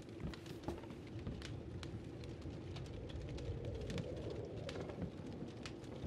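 A fire crackles in a hearth.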